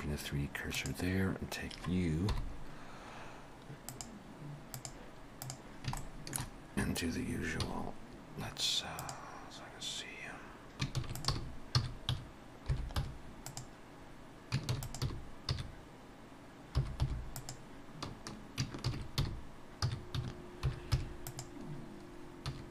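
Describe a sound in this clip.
A computer mouse and keyboard click rapidly.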